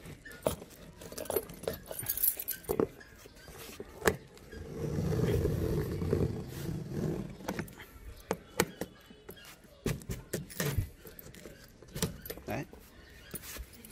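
A key scrapes and tears through packing tape on a cardboard box.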